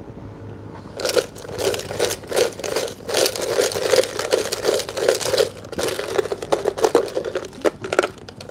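A plastic cup crinkles and rattles as it is handled.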